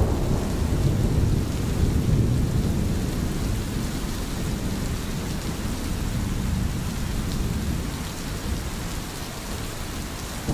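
A stream gurgles and flows steadily over rocks.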